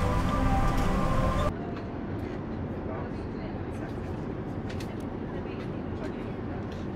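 An aircraft cabin hums with a low, steady engine drone.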